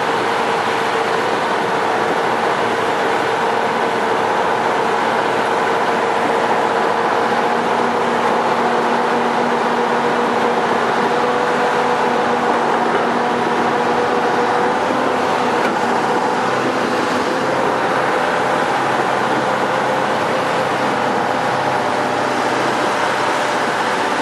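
A vehicle engine hums steadily while driving through water.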